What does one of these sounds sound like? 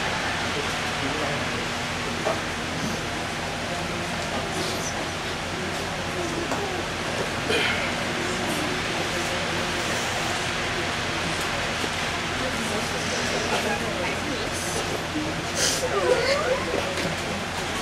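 Young women sob and sniffle quietly nearby.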